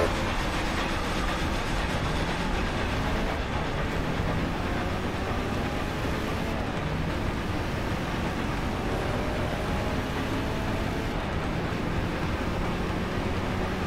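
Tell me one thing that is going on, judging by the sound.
A car engine revs hard and rises in pitch as the car speeds up.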